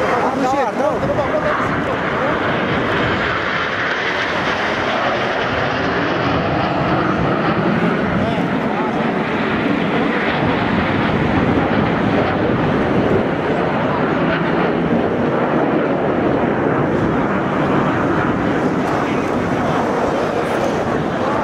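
Jet planes roar overhead in formation.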